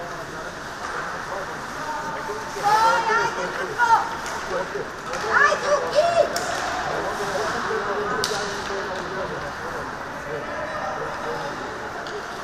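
Skates scrape across the ice in a large echoing hall.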